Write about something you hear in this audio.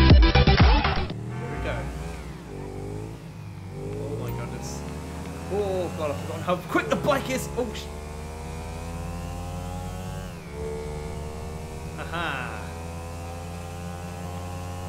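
A motorcycle engine revs up and down as the bike rides along.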